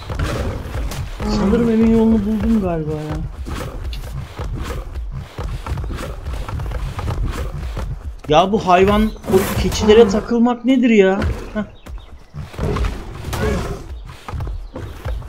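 Heavy footsteps of a large creature thud steadily along the ground.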